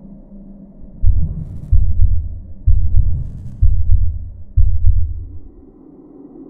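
A deep booming thuds in heavy pulses.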